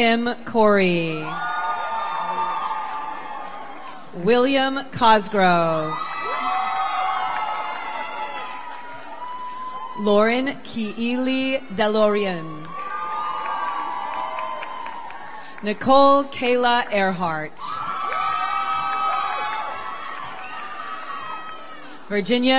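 An audience cheers and whoops.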